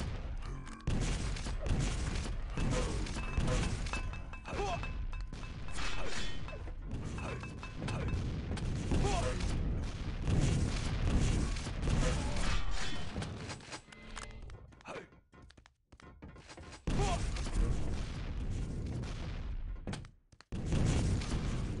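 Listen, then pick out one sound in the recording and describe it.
A gun fires rapidly in quick bursts.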